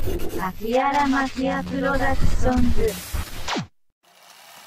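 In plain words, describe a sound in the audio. A man sings loudly with heavy effects.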